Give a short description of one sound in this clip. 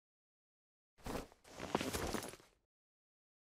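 A man gets up from a padded chair.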